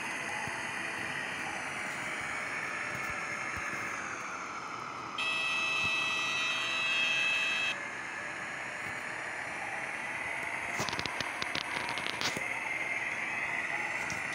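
Propeller engines drone steadily.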